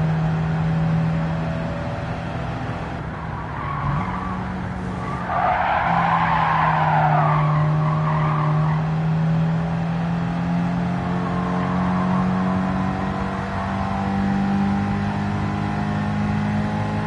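A racing car engine drones steadily at high speed, its pitch shifting with gear changes.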